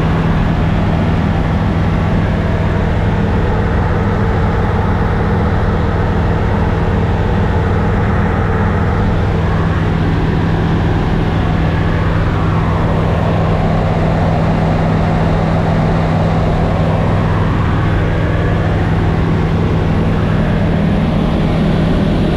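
Wind rushes past the cabin.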